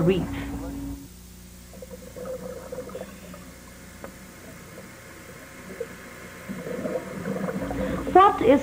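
Water gurgles, muffled and low.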